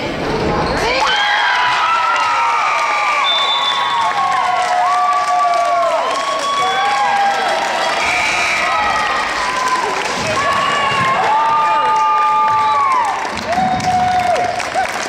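A crowd in an echoing gym cheers and screams loudly.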